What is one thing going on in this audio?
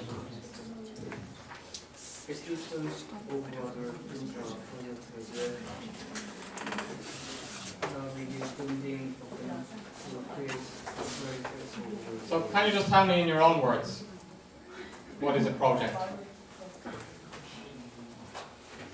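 A man lectures calmly, a little way off.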